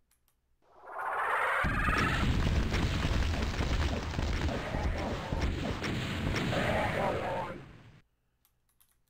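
Flames roar in a loud, rumbling blast that slowly fades.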